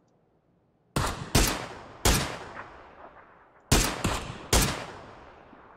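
Rifle shots crack loudly and echo away.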